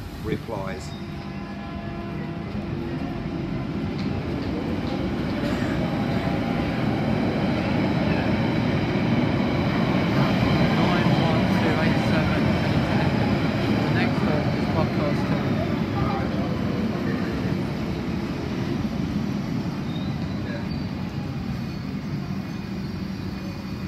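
An underground train rumbles and screeches along the tracks, swelling loud and then easing off.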